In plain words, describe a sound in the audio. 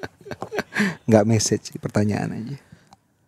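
A woman speaks into a microphone with a smile.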